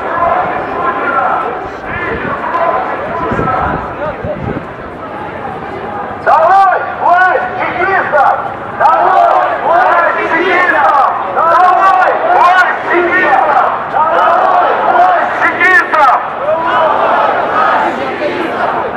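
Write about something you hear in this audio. A large crowd of men and women murmurs and chatters outdoors.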